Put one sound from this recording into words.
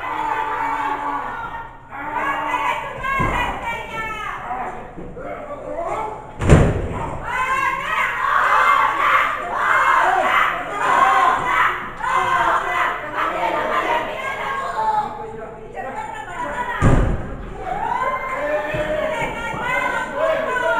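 Spectators shout and cheer loudly in an echoing hall.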